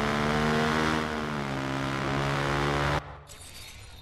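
A motorcycle engine roars at high speed.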